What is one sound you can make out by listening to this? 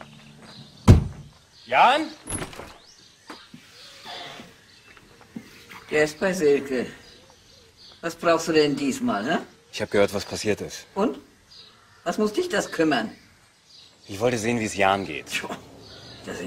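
An elderly woman speaks calmly from a doorway nearby.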